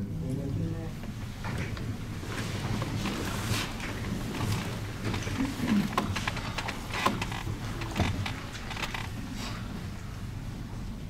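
Chairs scrape and creak as people sit down.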